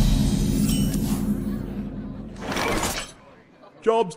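A bright game chime rings out to announce a turn.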